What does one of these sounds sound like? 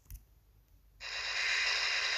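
A machine gun fires a rapid burst.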